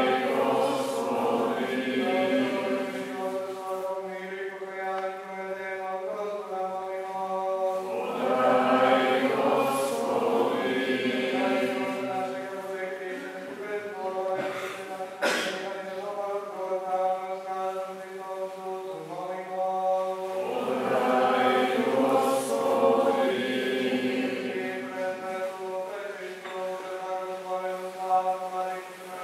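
A man chants in a low, steady voice, echoing in a large resonant hall.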